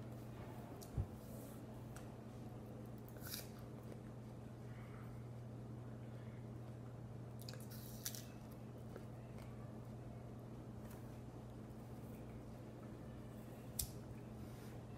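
A teenage boy bites into a crisp apple with a loud crunch.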